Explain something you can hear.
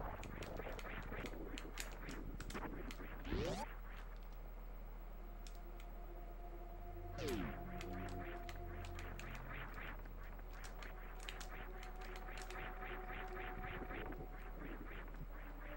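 Retro video game sound effects chirp and beep in quick pulses.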